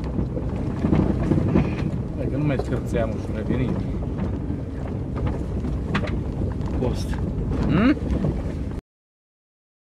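A car engine rumbles steadily while driving over rough ground.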